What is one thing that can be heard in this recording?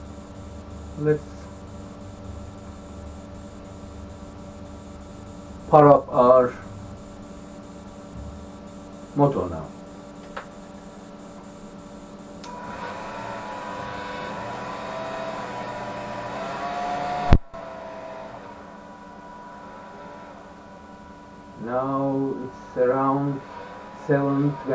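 An elderly man speaks calmly nearby, in short bursts.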